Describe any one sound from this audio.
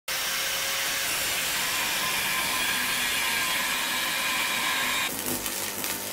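An angle grinder whines steadily as it grinds metal.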